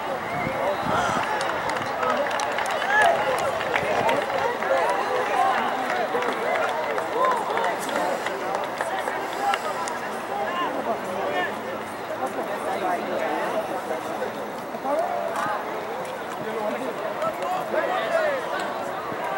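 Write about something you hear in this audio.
Young men shout and call to each other across an open field outdoors.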